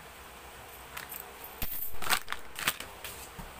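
Small plastic items clatter and knock as they are handled.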